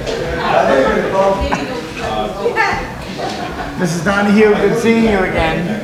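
A middle-aged man talks and laughs up close.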